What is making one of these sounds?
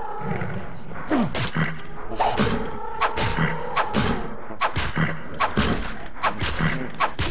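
A sword strikes a creature again and again.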